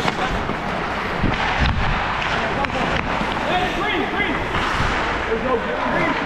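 Young players call out and shout in a large echoing rink.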